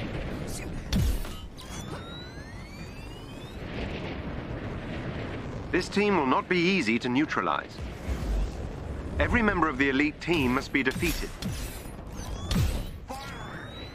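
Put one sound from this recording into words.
Energy blasts boom and crackle.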